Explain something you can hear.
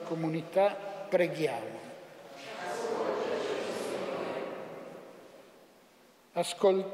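An elderly man chants slowly through a microphone in a large echoing hall.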